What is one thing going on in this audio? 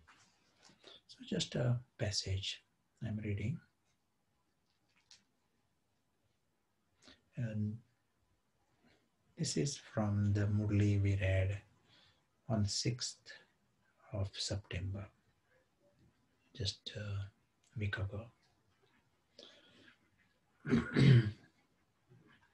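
An older man speaks calmly and slowly, close by, with long pauses.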